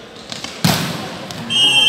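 A volleyball is struck hard with a loud smack.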